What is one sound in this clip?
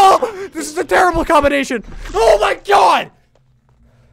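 A young man shouts and screams excitedly into a close microphone.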